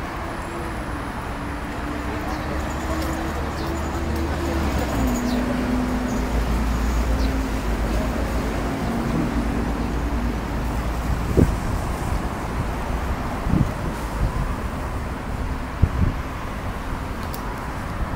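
Traffic rumbles steadily along a busy road outdoors.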